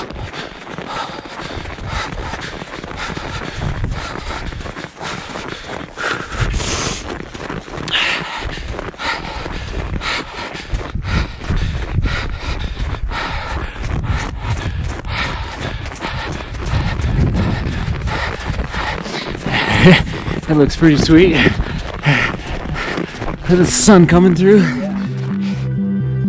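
Footsteps crunch on packed snow.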